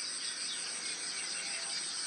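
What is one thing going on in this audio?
Birds chirp outdoors.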